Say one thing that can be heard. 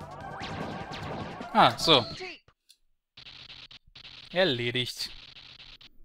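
Electronic game sound effects zap and sweep in short bursts.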